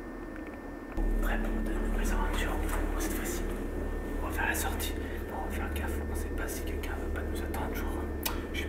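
A young man talks to the microphone up close with animation.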